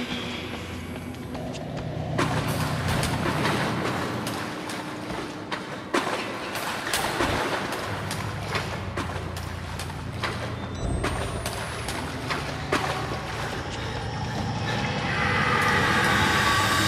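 Footsteps echo quickly along a brick tunnel.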